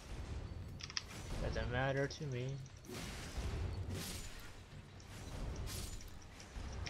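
A sword slashes and clashes against bones in a fight.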